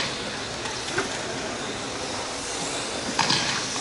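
Small electric model cars whine and buzz as they race in a large echoing hall.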